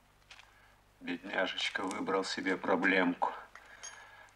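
A middle-aged man speaks close by.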